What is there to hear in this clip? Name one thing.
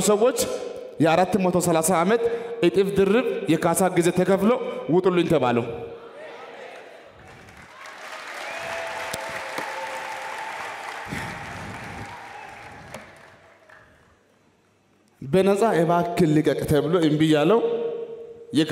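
A young man preaches with passion through a microphone, echoing in a large hall.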